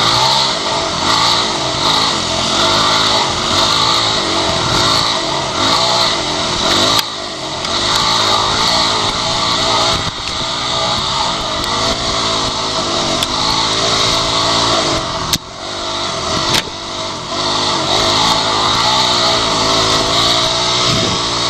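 A motorcycle engine revs and roars up close, rising and falling in pitch.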